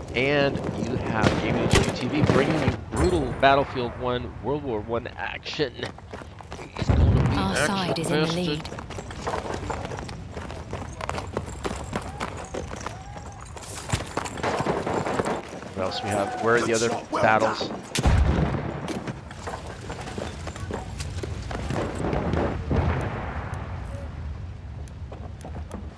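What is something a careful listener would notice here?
Gunshots crack now and then.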